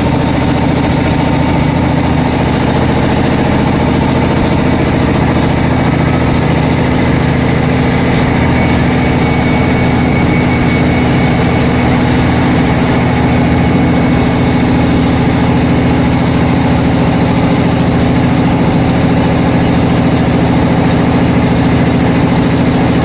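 A train rumbles steadily as it pulls away and gathers speed, heard from inside a carriage.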